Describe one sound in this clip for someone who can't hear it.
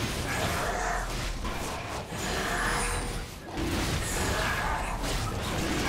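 Magical spell effects whoosh and crackle during a fight.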